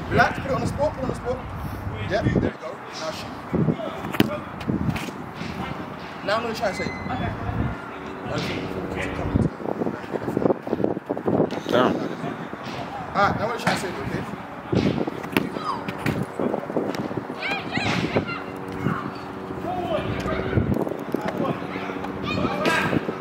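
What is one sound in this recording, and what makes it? A football is kicked on artificial turf.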